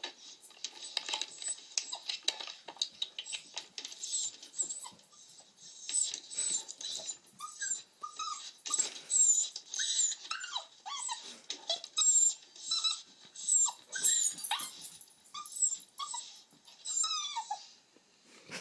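A dog whines in high, squeaky bursts close by.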